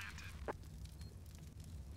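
A rifle fires a shot.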